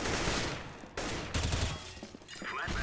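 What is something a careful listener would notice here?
A rifle fires a short burst of shots.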